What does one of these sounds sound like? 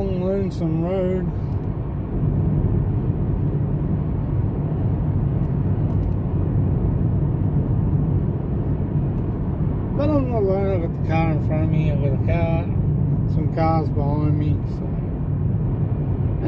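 A car engine hums and tyres roar steadily on the road.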